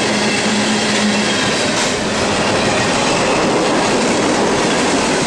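A freight train rumbles past close by, its wheels clattering loudly on the rails.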